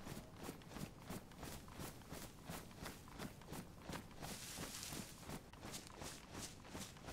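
Quick footsteps crunch through grass and dry leaves.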